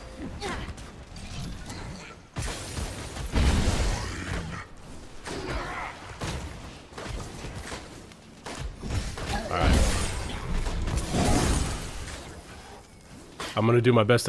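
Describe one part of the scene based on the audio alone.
Metal weapons clash in a fight.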